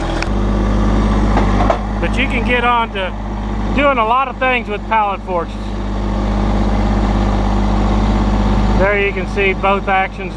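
A tractor engine idles steadily close by.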